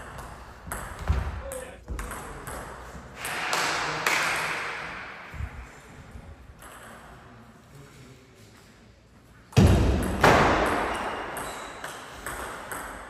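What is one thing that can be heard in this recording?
A ping pong ball clicks back and forth off paddles and a table in an echoing hall.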